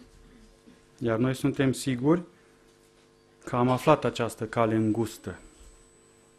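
A middle-aged man speaks through a microphone in a large room, in short measured phrases.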